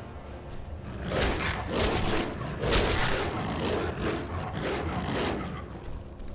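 Claws strike flesh with heavy thuds.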